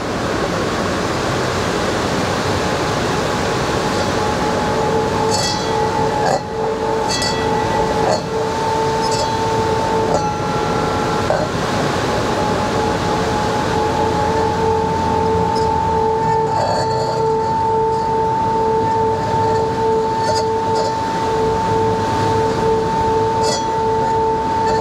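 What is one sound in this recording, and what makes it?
Light tapping knocks on a small object, over and over.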